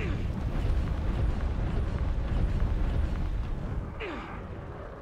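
Fire roars and crackles in a game battle.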